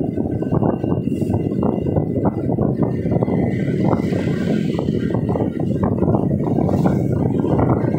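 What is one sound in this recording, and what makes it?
A motorbike engine buzzes close by as the car passes it.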